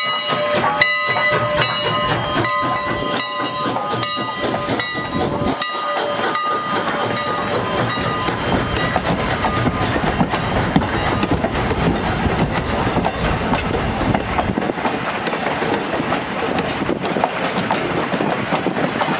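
Train wheels clatter and rumble steadily on the rails.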